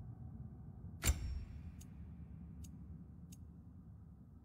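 A game menu clicks softly as options are selected.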